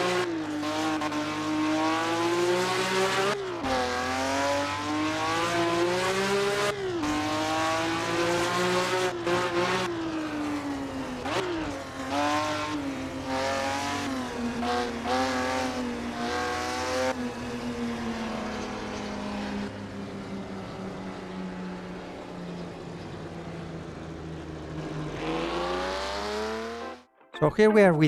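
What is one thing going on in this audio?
A racing car engine roars loudly, revving up and dropping as gears shift.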